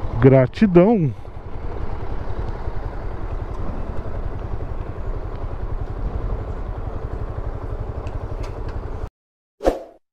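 A motorcycle engine idles and rumbles.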